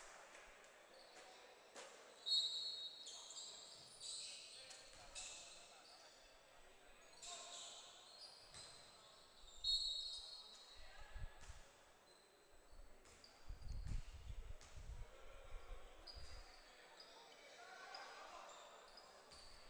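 Sounds echo in a large indoor gym.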